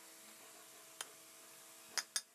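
A hammer taps sharply on metal.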